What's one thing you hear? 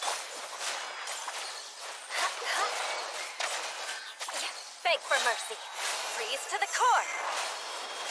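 Energy beams whoosh past.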